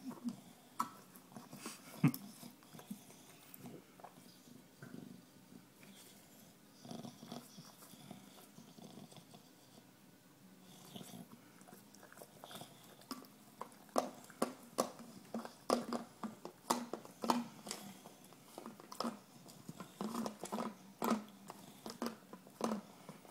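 A dog licks and chews noisily on a plastic bottle.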